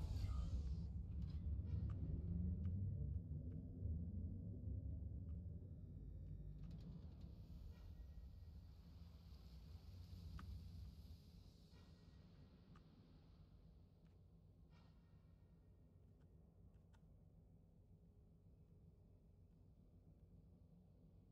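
A deep ship engine rumbles and slowly fades.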